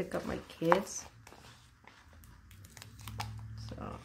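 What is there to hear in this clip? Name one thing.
A sheet of stickers rustles and crinkles in hands.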